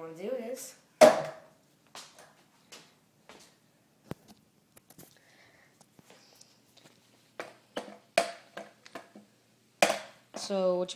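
A skateboard clacks and knocks on a hard floor.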